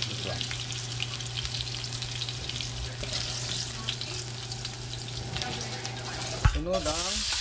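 A metal spoon scrapes and taps against a frying pan.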